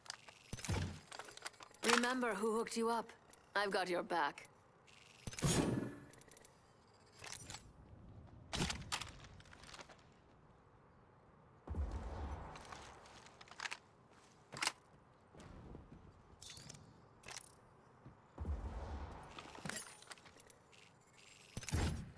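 Short interface clicks sound as items are picked up from a menu.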